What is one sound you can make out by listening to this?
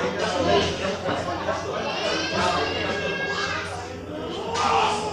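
A man sings through a microphone over loudspeakers.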